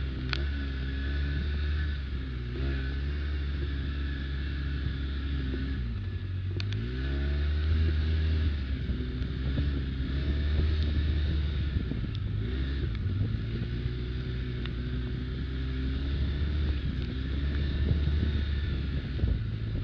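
Tyres crunch over dry leaves and dirt on a bumpy trail.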